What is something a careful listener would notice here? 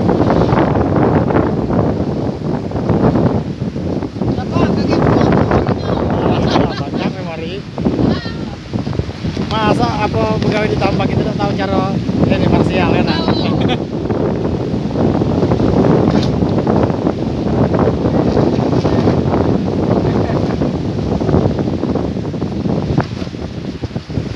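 Wind blows hard outdoors.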